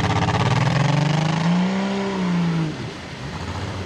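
A truck engine revs loudly outdoors.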